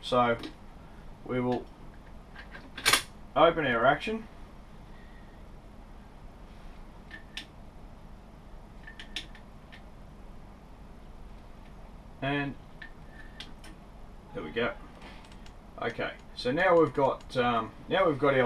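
Metal parts click as a rifle is handled.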